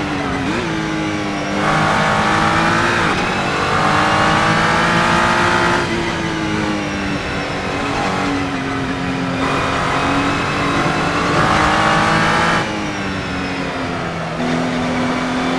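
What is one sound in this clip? A racing car engine roars, rising and falling as it accelerates and shifts gears.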